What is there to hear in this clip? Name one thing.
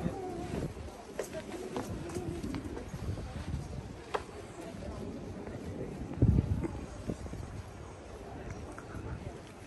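Footsteps walk on paved stone outdoors.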